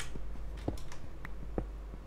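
A pickaxe taps repeatedly against stone.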